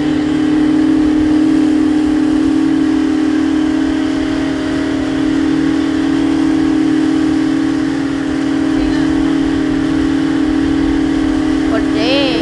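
Water splashes against a moving boat's hull.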